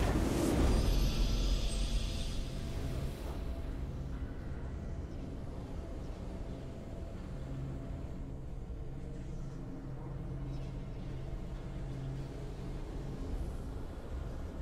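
Triumphant orchestral music plays with a steady low drone.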